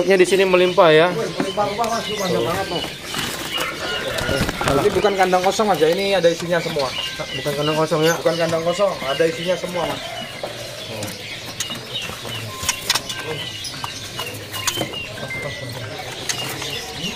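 Small birds chirp repeatedly in short, high notes.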